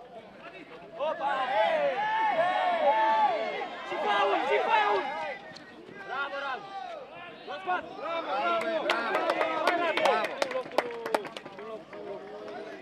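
A crowd of spectators chants and cheers loudly in an open stadium.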